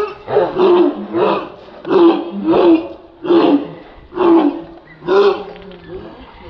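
A large dog barks loudly and repeatedly close by.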